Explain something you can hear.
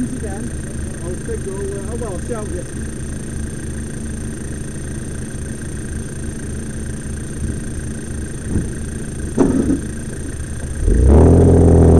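An off-road vehicle's engine idles close by with a low, steady throb.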